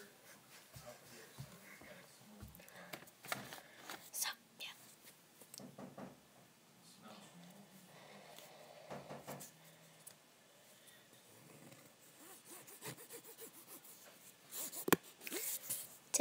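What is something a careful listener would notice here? Clothing rustles and knocks against a microphone close by.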